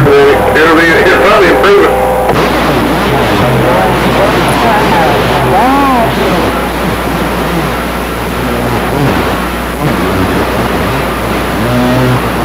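Static hisses and crackles steadily from a radio loudspeaker.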